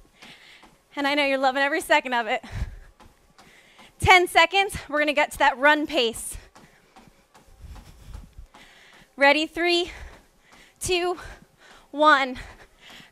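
A young woman talks with animation through a headset microphone.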